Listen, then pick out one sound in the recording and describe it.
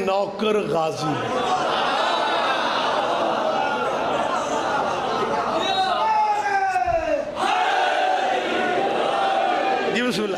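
A man speaks passionately and loudly into a microphone, heard through loudspeakers in an echoing space.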